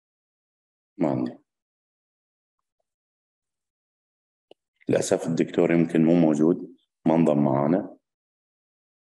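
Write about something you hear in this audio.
A man speaks calmly and close by in short bursts.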